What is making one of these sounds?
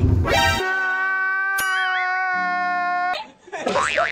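A man wails and sobs loudly.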